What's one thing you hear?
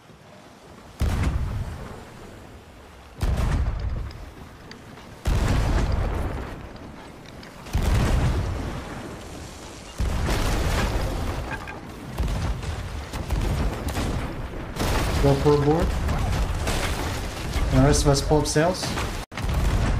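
Cannons boom repeatedly in deep heavy blasts.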